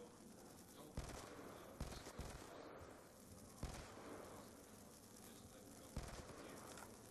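Guns fire in loud single shots and short bursts.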